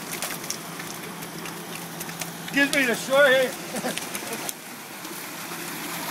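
A fish flaps and splashes in a net.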